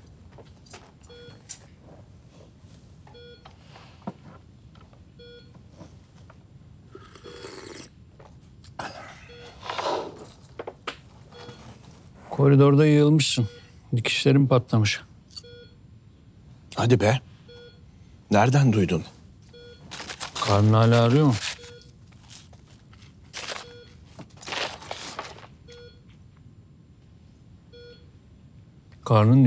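A heart monitor beeps at a steady pace.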